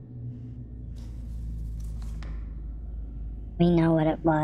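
Paper rustles as a letter is picked up and unfolded.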